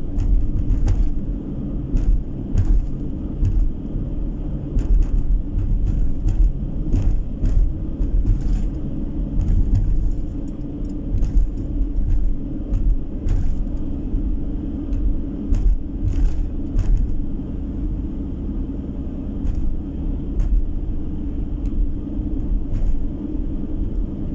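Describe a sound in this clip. Tyres hum and thump over a wet, patched road.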